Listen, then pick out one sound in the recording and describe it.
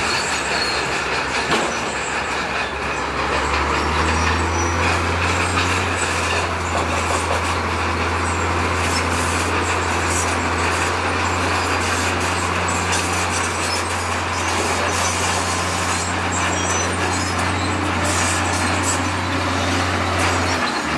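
Rocks scrape and grind under a bulldozer blade.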